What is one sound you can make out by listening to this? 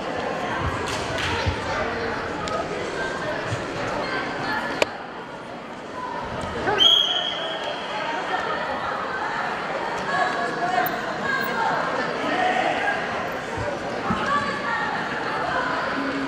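Wrestlers' feet shuffle and thud on a mat.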